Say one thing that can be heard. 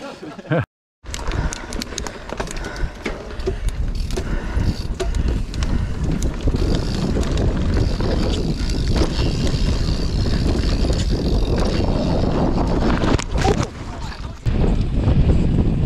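Bike tyres roll and rattle over a rough dirt trail.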